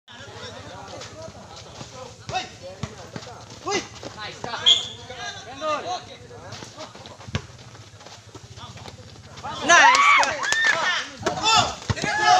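Young men shout and call out loudly outdoors.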